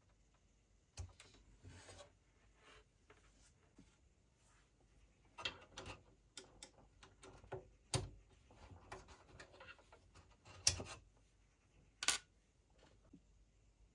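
Hands pull and handle parts inside a device, with rustling and knocks.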